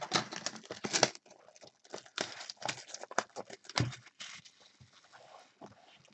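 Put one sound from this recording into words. Cardboard boxes slide and bump on a table.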